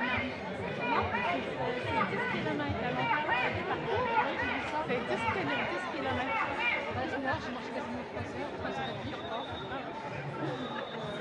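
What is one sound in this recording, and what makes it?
Footsteps of many people shuffle along a street.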